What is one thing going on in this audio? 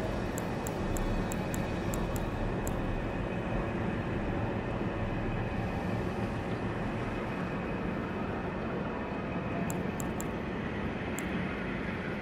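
Short menu clicks tick in quick succession.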